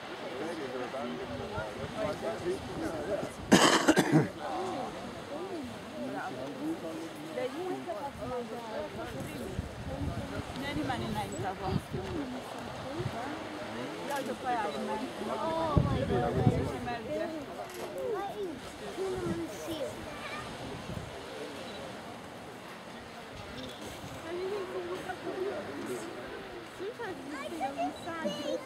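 Wind gusts outdoors, rustling through dune grass.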